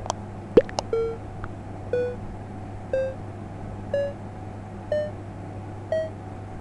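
A game countdown beeps once a second, each beep a little higher.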